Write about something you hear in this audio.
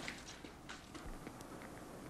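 A small campfire crackles softly.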